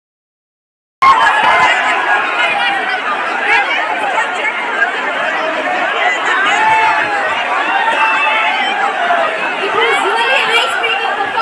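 A large crowd of young women chatter and shout excitedly all around, close by.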